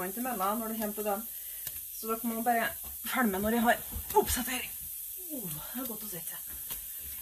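A woman talks expressively close by, her voice rising and falling in pitch.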